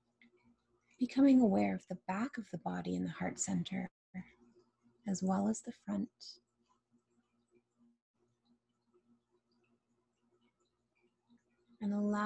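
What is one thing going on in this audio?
A woman speaks calmly and softly close to a microphone, with pauses.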